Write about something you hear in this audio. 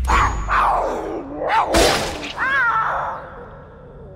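A wild cat snarls and yowls while fighting.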